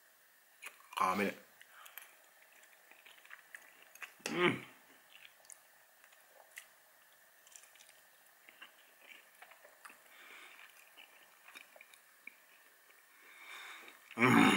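A young man chews food with his mouth open.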